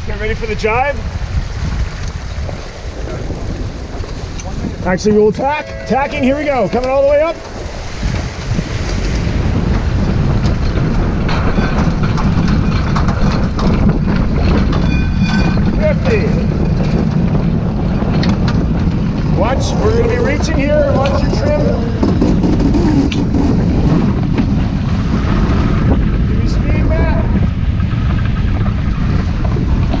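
Water splashes and rushes along a boat's hull.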